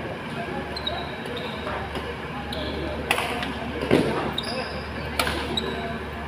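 Rackets hit a shuttlecock with sharp snaps in a large echoing hall.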